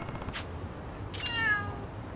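A cat laps and chews food.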